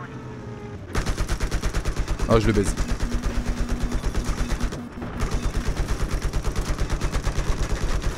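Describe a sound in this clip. A helicopter's rotor thumps rapidly and loudly overhead.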